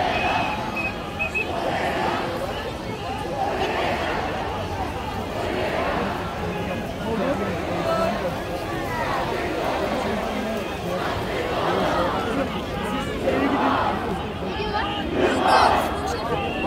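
Young men shout excitedly close by.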